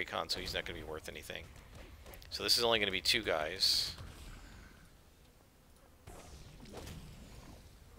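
Magic blasts and blows strike in a fantasy fight.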